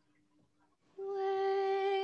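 A choir begins singing a slow, sustained song, heard over an online call.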